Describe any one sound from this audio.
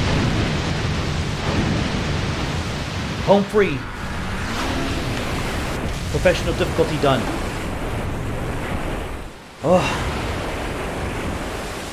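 A jet ski engine roars over water.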